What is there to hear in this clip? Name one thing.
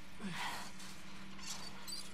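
A chain-link fence rattles as someone climbs over it.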